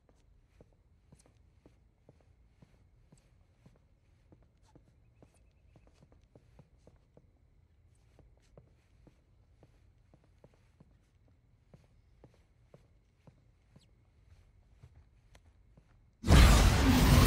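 Footsteps tap softly on a wooden floor at an even pace.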